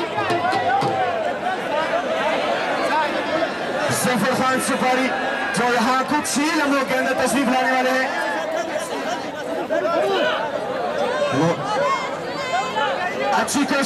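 A large outdoor crowd chatters and shouts throughout.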